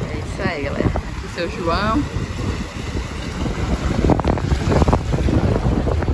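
Small waves wash onto the shore.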